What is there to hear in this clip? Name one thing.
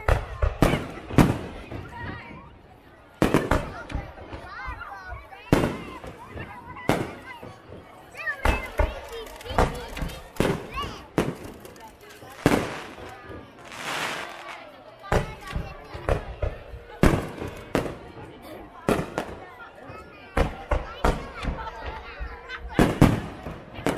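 Fireworks crackle and sizzle after the bursts.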